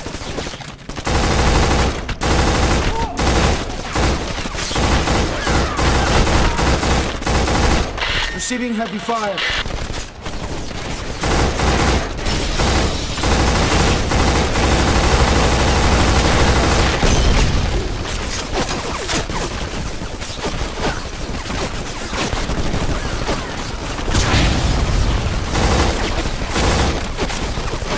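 Rifle gunfire rattles in rapid bursts.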